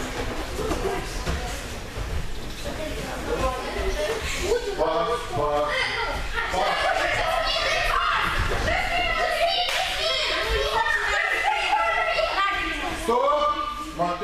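Children shout and call out as they run.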